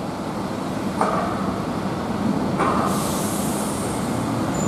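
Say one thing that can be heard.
Bus air brakes hiss sharply.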